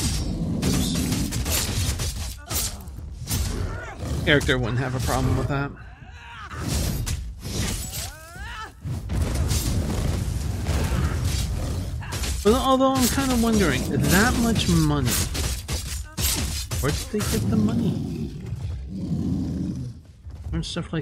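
Blades clash and strike in quick, repeated hits.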